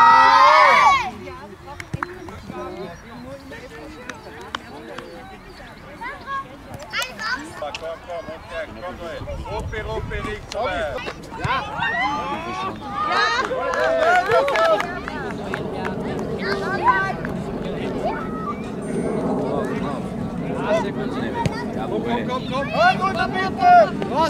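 Children call out and shout across an open field outdoors.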